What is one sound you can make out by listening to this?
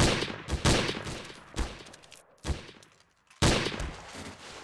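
Rifle shots crack loudly and echo.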